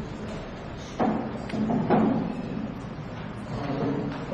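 A microphone knocks as it is handled.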